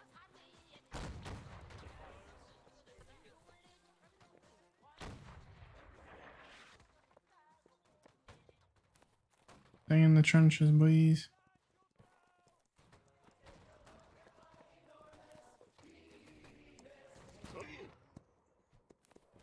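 Musket shots crack in the distance.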